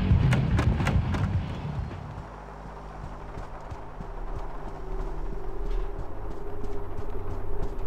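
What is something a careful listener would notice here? Footsteps walk along a wooden floor.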